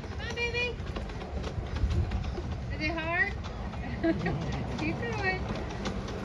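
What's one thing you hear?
A small ride-on train rolls along its track with a low hum.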